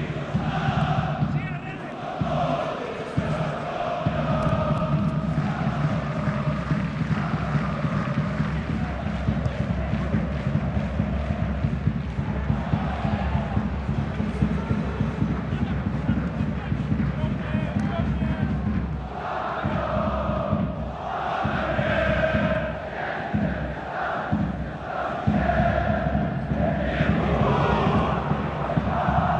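A stadium crowd chants and roars steadily throughout.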